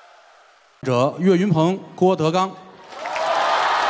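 A man speaks loudly into a microphone in a large hall.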